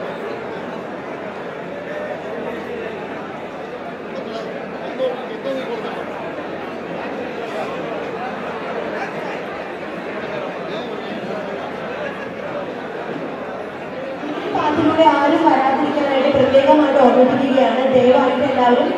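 A crowd of people chatters and murmurs all around.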